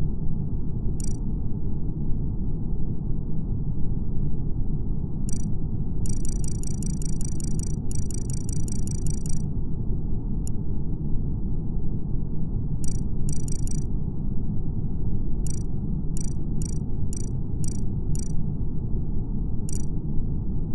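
Short electronic blips sound as game settings are tapped, sometimes in quick runs.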